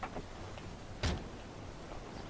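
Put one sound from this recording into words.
A car door slams shut.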